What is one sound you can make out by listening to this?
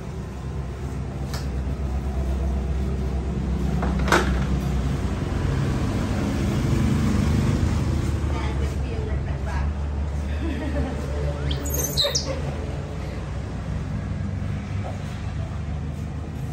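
An electric fan hums steadily nearby.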